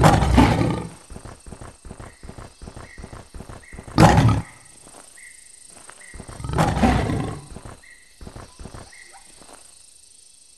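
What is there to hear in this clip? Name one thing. Paws patter steadily on dry ground.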